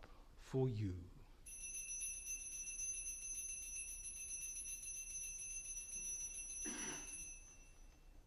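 An elderly man speaks briefly and calmly through a microphone.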